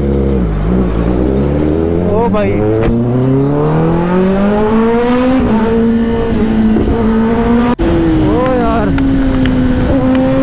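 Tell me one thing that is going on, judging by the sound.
A motorcycle engine roars loudly, its pitch climbing and dropping as it speeds up and shifts gears.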